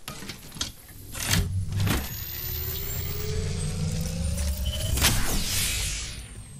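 A shield battery whirs and hums as it charges.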